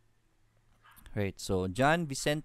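A young man speaks calmly and close into a microphone.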